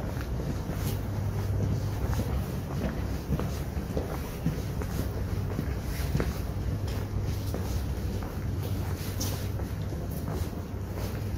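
Footsteps tap on cobblestones nearby.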